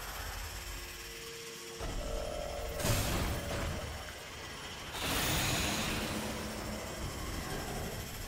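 Whooshing bursts sound as a game character dashes forward.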